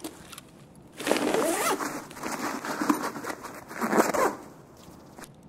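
Gear rustles and clatters as a bag is searched.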